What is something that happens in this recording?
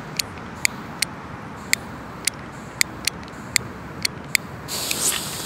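A lighter clicks several times.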